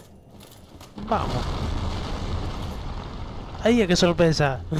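Stone rubble crashes down and clatters.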